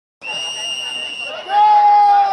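A referee's whistle blows one long sharp blast.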